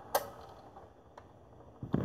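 A vinyl record crackles faintly under the needle.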